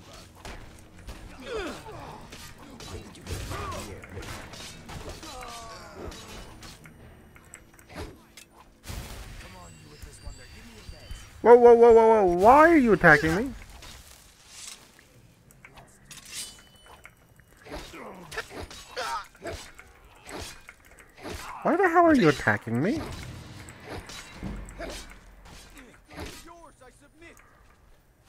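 Men grunt and shout in a fight.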